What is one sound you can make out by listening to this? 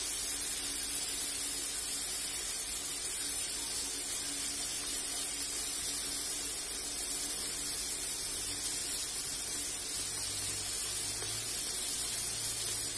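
Prawns sizzle steadily in hot oil.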